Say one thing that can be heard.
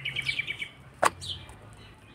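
A flatbread slaps down onto an iron griddle.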